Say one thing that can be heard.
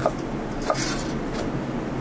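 A knife chops vegetables on a wooden board.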